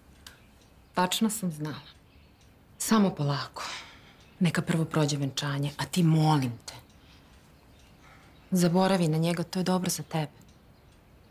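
A woman speaks tensely close by.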